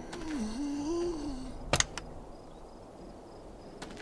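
A car trunk lid pops open.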